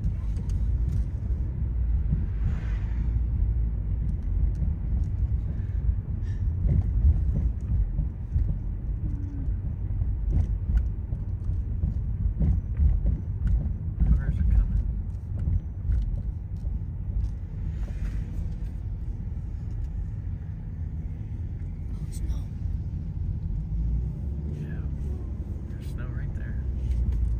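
A car engine rumbles low and steady inside the car.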